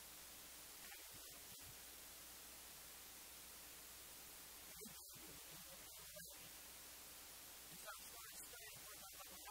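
A man preaches with emphasis into a microphone.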